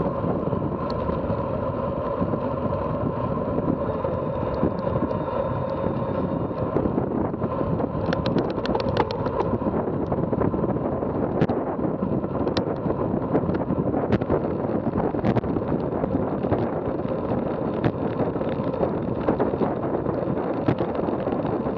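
A bicycle frame rattles and clicks over bumps.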